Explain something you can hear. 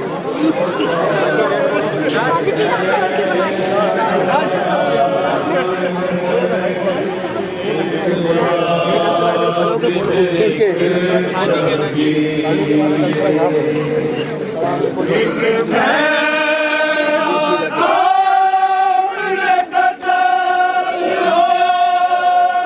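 A crowd of men chants together in loud, overlapping voices.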